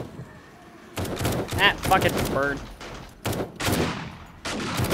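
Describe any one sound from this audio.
A rifle fires repeated shots.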